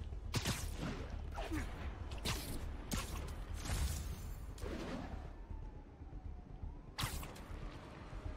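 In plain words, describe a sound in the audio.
Web lines shoot out again and again with sharp, whooshing snaps.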